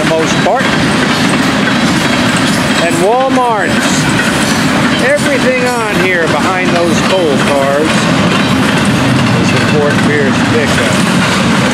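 Train wheels squeal on the rails now and then.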